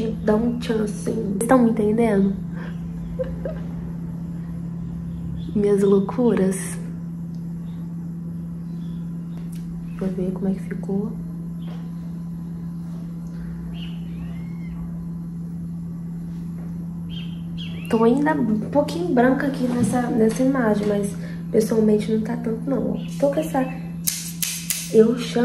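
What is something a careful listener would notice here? A young woman talks calmly and close to a microphone, in bursts with pauses.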